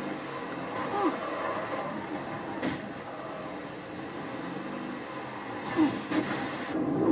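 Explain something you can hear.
Game blasts and gunfire crackle through a small television speaker.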